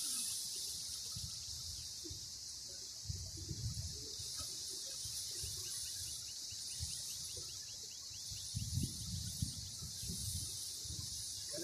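Wind blows outdoors and rustles through dry reeds.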